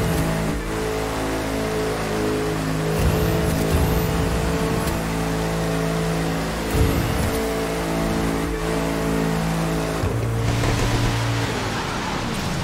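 A powerful car engine roars steadily at high speed, its pitch dropping as it shifts gears.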